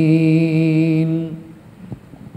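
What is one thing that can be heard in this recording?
A man speaks in a drawn-out, sing-song voice through a microphone.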